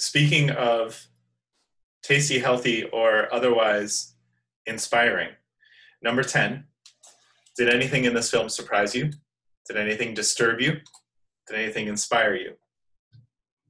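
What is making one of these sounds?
A man speaks calmly through an online call microphone, close and clear.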